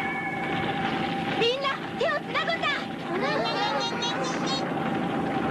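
A young boy shouts in alarm.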